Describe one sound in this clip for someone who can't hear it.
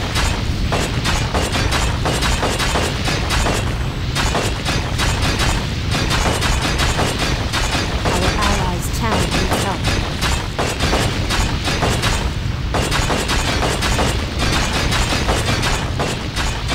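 Metal weapons clash rapidly.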